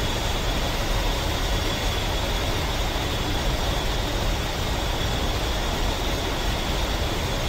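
A twin-turbofan attack jet whines and rumbles as it taxis.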